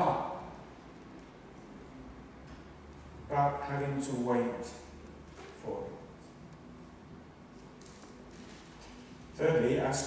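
A man speaks calmly through a microphone in a large echoing hall, with long pauses.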